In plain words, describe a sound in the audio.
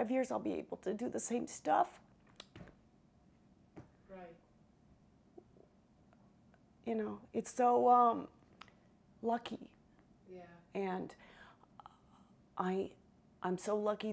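A middle-aged woman speaks expressively, close to a microphone, with pauses.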